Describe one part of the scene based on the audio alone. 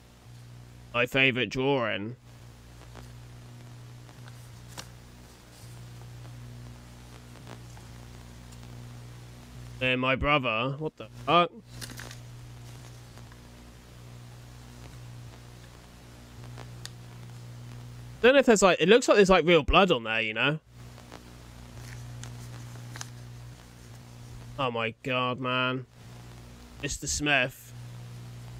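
A young man speaks close to a microphone in short bursts, with animation.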